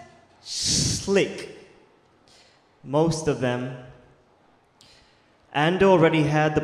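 A young man reads aloud expressively into a microphone, heard through a loudspeaker, in bursts with pauses.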